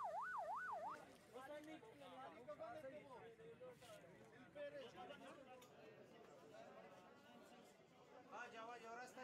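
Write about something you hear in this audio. Men talk and call out in a crowd close by.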